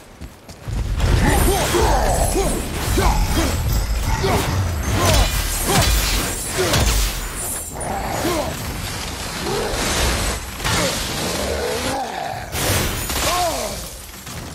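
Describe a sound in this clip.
A large creature roars and growls.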